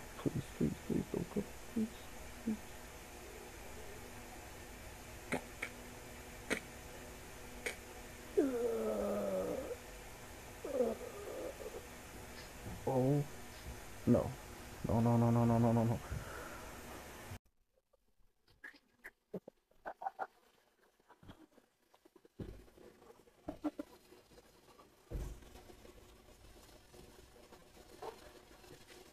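Soft fabric rustles close by.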